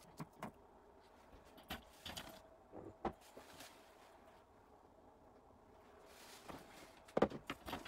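Metal parts click and knock on a tabletop.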